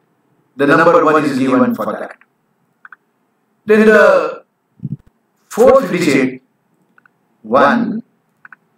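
An elderly man speaks calmly in short phrases through a microphone on an online call.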